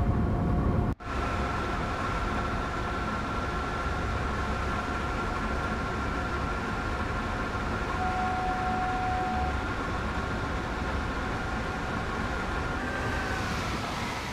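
An electric locomotive hums and whines as it passes close by.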